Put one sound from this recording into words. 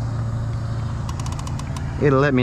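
A fishing reel clicks rapidly.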